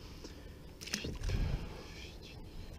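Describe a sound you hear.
A fish splashes into the water.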